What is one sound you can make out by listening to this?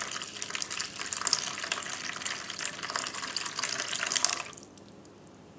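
Water pours and splashes into a bowl.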